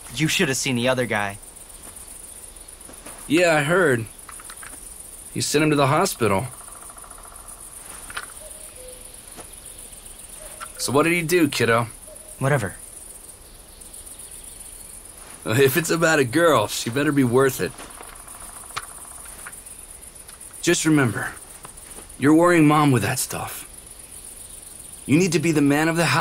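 A young man speaks calmly in short phrases, close by.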